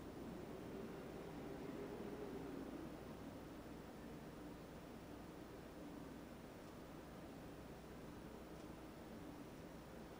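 A paintbrush softly dabs and strokes on canvas.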